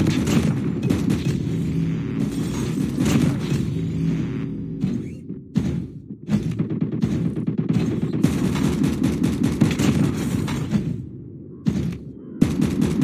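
A heavy rotary gun fires in rapid, rattling bursts.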